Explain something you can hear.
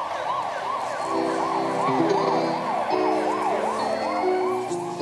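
A keyboard plays steady chords.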